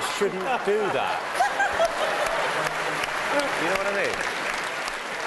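A large audience laughs loudly.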